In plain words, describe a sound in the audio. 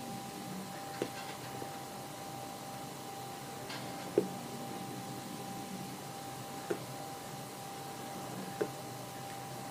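A man puffs on a pipe with soft, repeated smacks of the lips.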